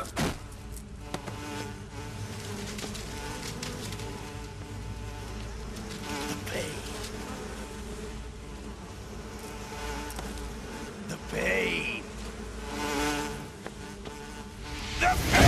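A swarm of wasps buzzes loudly.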